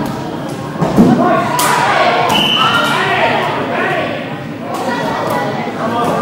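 A ball bounces on a wooden floor in a large echoing hall.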